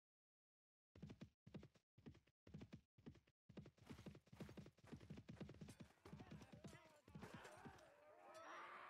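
Hooves thud quickly and softly.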